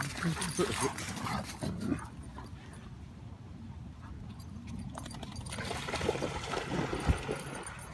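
Dogs pant and scuffle as they play on sand.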